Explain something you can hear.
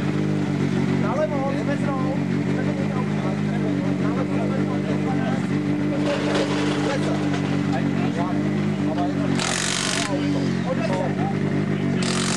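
A car engine idles steadily nearby.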